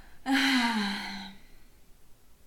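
A young woman exclaims in a high voice into a microphone.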